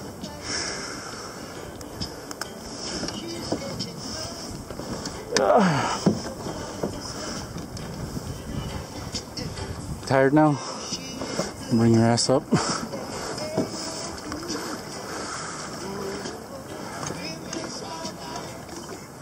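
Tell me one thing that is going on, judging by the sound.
Wind blows steadily over open water outdoors.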